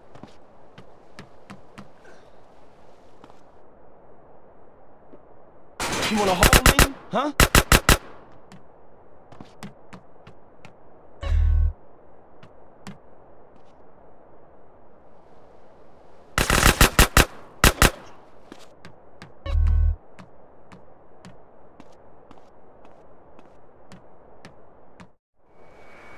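Footsteps run in quick rhythm.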